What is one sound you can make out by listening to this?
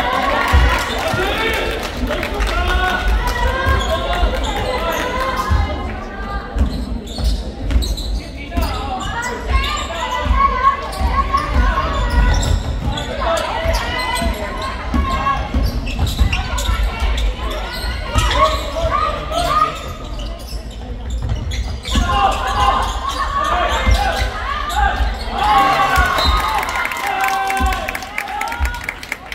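Young players and spectators shout and chatter in a large echoing hall.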